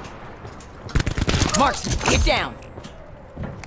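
An automatic rifle fires a burst.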